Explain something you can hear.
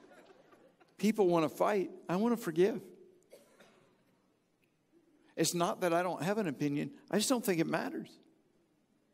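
A middle-aged man speaks calmly through a microphone in a large hall.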